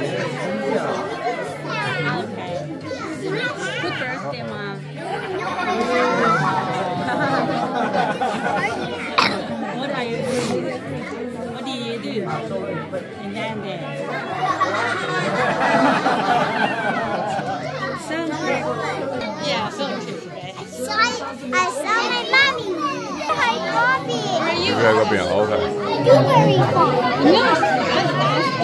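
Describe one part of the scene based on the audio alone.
Young children speak into microphones, heard through a loudspeaker in a room.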